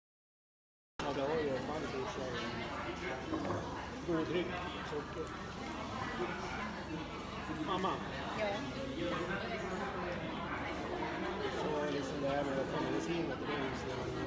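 Many voices murmur in a crowded room in the background.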